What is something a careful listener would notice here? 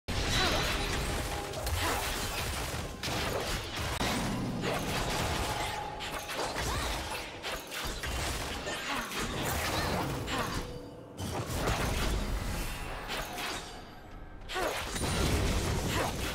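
Game spell effects whoosh and clash during a fight.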